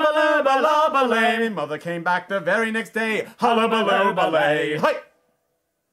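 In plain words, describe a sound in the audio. Two men sing together loudly, close by.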